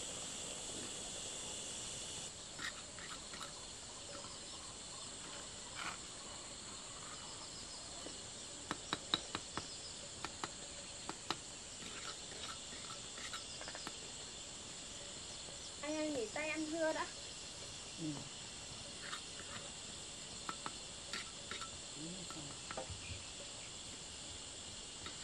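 A trowel taps and scrapes on bricks.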